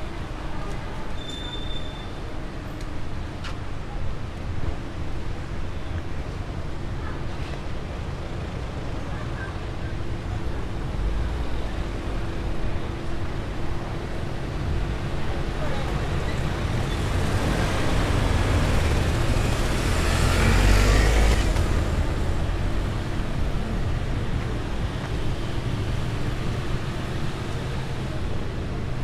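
City traffic hums steadily nearby outdoors.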